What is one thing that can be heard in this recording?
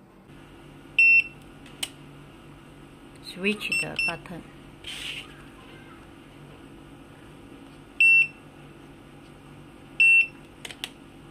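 A card reader gives short, high electronic beeps.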